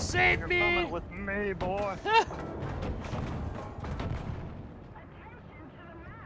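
Explosions boom and roar close by.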